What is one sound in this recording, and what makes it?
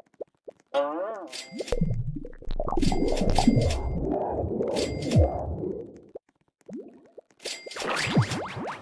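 Electronic game sounds chime and pop.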